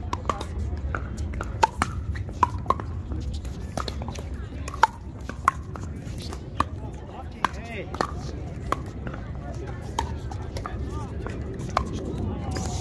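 Pickleball paddles pop sharply against a plastic ball in a rally outdoors.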